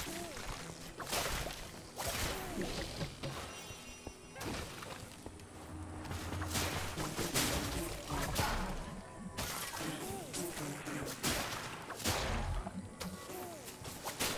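Magic spells burst with bright whooshing blasts.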